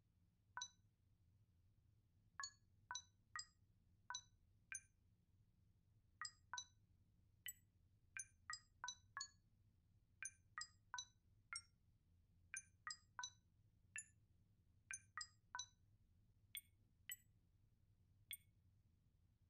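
A keypad beeps with short electronic tones as buttons are pressed.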